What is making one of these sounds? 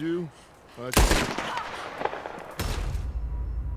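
A gunshot rings out sharply.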